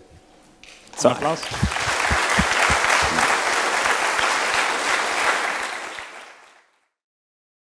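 An audience applauds loudly, then the applause fades.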